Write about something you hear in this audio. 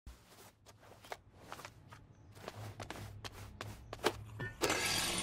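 Footsteps slap quickly on pavement as someone runs.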